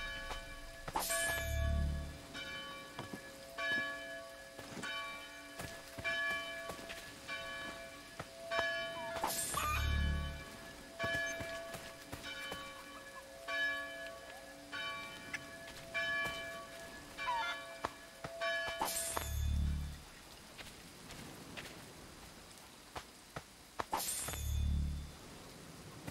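A muffled thud sounds as a body on the ground is searched.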